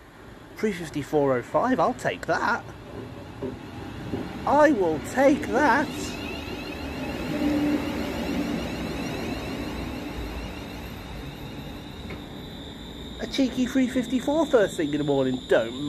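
A train rumbles into the station and rolls past close by.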